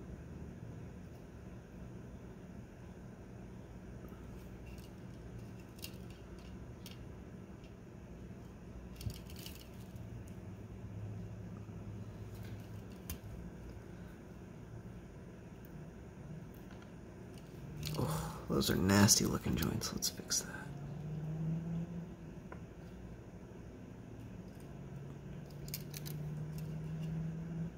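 Fingers handle a small plastic circuit board with light clicks and scrapes.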